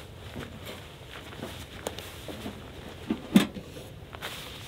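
Metal camping gear clinks and knocks as it is set down close by.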